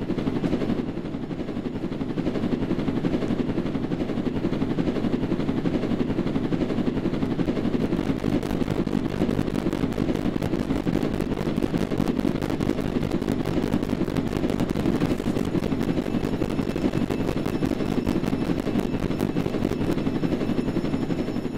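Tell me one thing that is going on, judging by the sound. A motorbike engine rumbles steadily.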